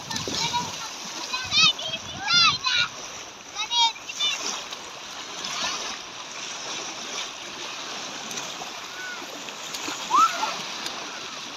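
Small waves wash and splash steadily close by.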